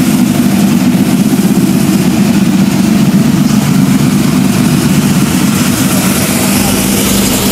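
A race car engine idles nearby with a deep, steady rumble.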